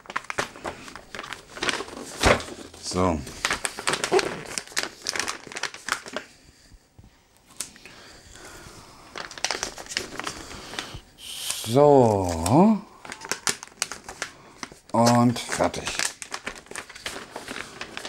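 Wrapping paper rustles and crinkles as a gift is handled.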